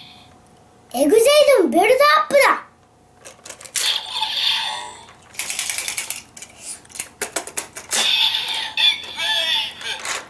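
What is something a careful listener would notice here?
A toy belt plays loud electronic sound effects and jingles.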